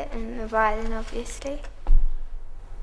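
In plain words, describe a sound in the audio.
Two violins play together, close by.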